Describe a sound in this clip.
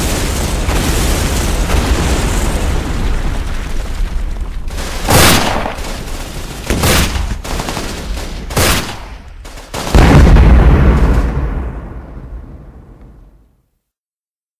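Explosions boom and rumble heavily, then fade away.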